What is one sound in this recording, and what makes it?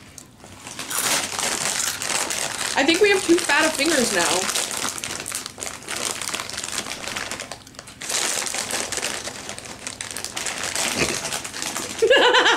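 A plastic chip bag crinkles and rustles.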